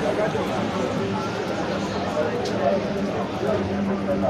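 Footsteps shuffle close by.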